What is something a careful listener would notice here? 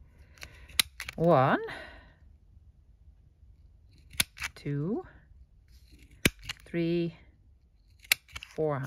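A hand punch clicks sharply as it punches through paper.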